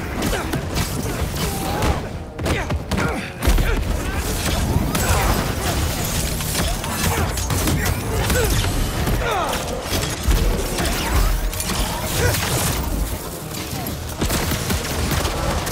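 Electric blasts crackle and zap.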